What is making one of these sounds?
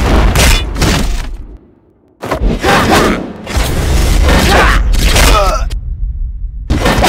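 Weapons swish and clash in a rapid fight.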